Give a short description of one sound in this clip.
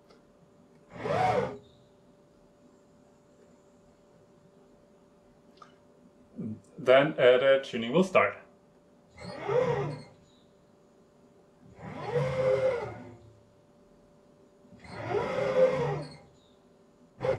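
Stepper motors whine in short rising and falling bursts as a machine head moves back and forth.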